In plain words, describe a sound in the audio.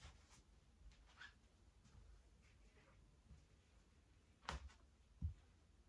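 Footsteps shuffle softly across a wooden floor.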